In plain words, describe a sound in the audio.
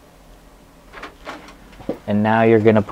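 A disc drive tray slides open with a soft mechanical whir and click.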